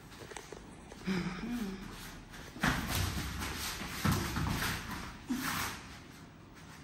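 Bodies thud and scuffle on a floor mat.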